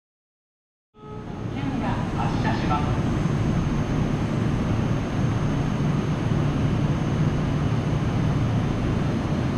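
A stopped train hums steadily and loudly with a low rumble.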